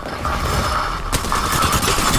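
An automatic rifle fires bursts of gunshots.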